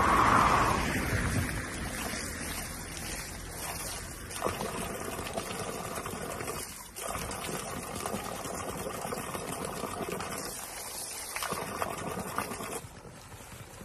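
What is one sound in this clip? Water splashes steadily from a spout onto the ground.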